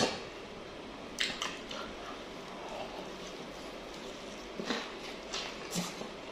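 A young man chews and smacks his lips loudly.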